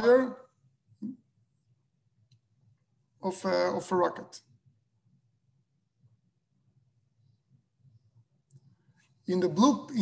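A man speaks calmly in short phrases over an online call.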